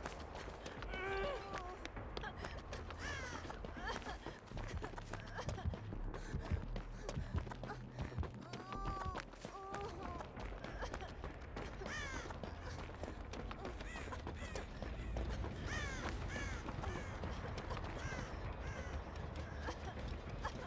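Quick footsteps run through grass and snow.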